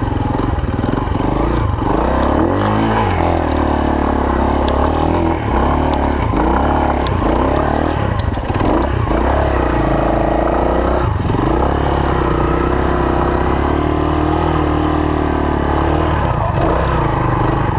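A motorcycle engine revs up and down loudly, close by.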